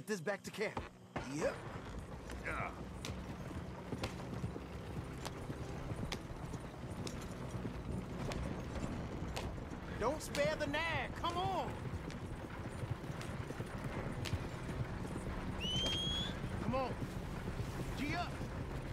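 Horse hooves clop on the ground.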